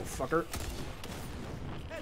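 Gunshots crack in a game.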